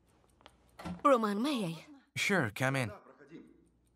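A young woman speaks up in surprise.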